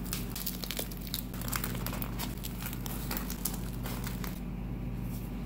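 Hands fold a soft tortilla with light rustling and crackling.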